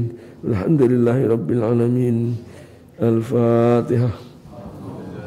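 A man chants in a long, drawn-out melodic voice through a microphone.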